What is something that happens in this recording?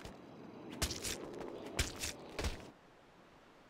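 Heavy punches thud against a body.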